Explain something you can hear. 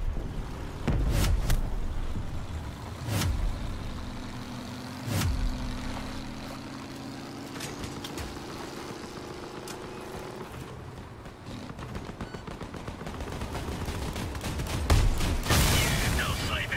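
Loud blasts and metal impacts crash close by.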